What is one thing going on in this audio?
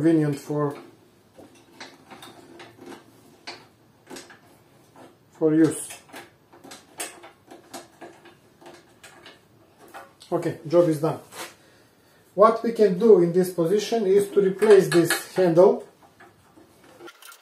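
Metal parts click and clack as a latch is fastened.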